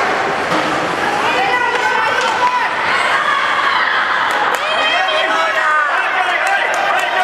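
Young players shout and call out in a large echoing arena.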